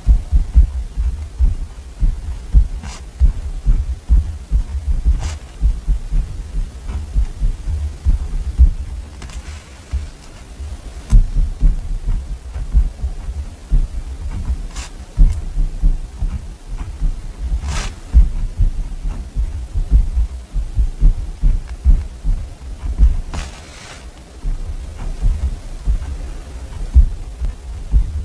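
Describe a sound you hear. A pen scratches on paper close by.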